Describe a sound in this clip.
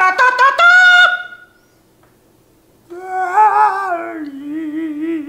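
A middle-aged man sings loudly and theatrically into a microphone.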